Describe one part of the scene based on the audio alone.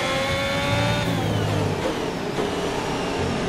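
A racing car engine drops in pitch sharply as gears shift down.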